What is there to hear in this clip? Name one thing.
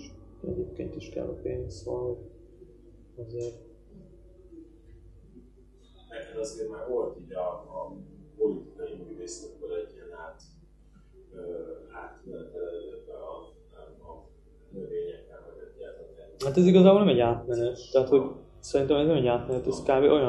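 A young man speaks calmly and thoughtfully nearby, with pauses.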